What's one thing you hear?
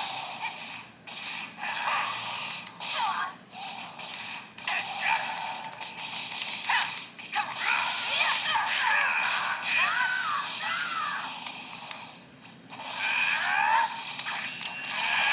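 Fight sound effects of whooshing blasts and impacts play from a small handheld console speaker.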